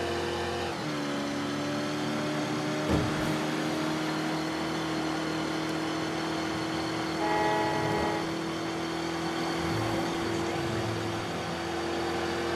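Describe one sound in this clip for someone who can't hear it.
A car engine hums steadily, dropping in pitch as it shifts gear.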